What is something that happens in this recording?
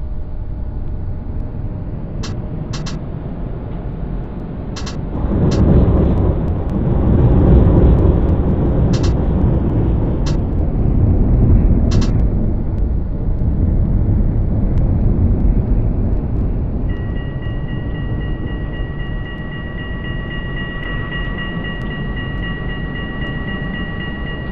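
A tram rumbles along rails, growing louder as it speeds up.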